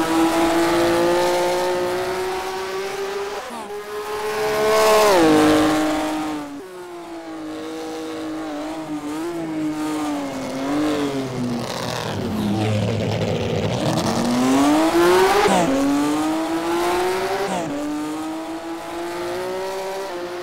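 A racing car engine roars, revving up and down through the gears.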